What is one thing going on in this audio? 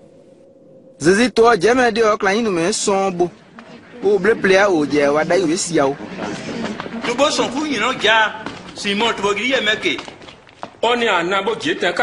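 Several men talk loudly with animation.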